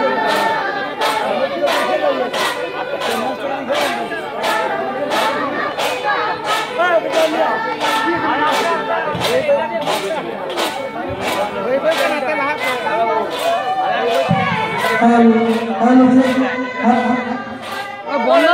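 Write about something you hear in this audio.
Metal plates are struck in a steady, quick beat.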